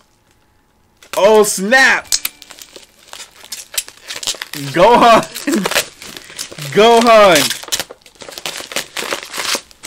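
A package rustles and crinkles in a man's hands.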